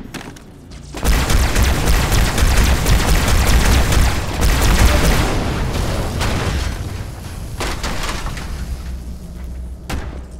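An explosion booms loudly and rumbles.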